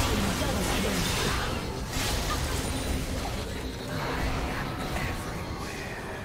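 Magic spells burst and whoosh during a fast fight.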